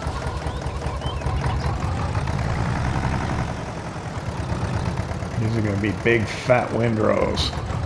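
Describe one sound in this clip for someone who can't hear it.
A tractor engine chugs steadily.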